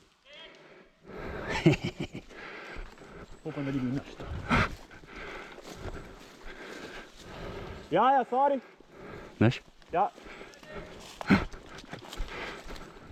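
Footsteps crunch on leaves and dirt of a forest path.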